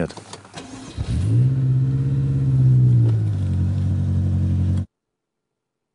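A car engine starts and idles with a deep hum.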